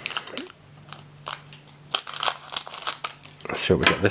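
Scissors snip through a plastic wrapper.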